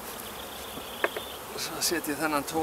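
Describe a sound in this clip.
A wooden hive box knocks and scrapes as it is lifted.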